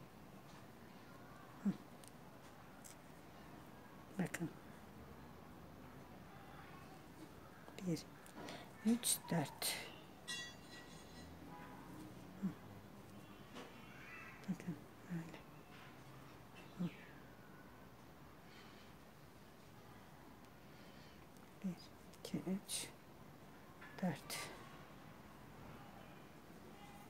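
A crochet hook softly taps and rustles through yarn.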